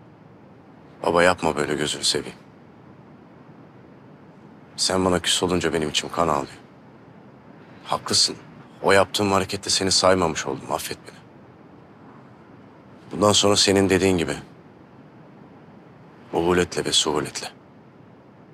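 A younger man speaks calmly in reply, close by.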